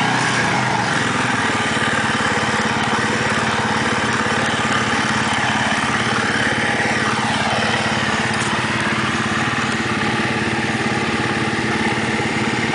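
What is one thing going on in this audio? A quad bike engine roars and revs nearby.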